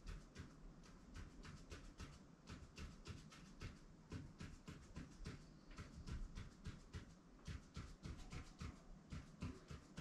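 A pen scratches short, quick strokes on a hard surface.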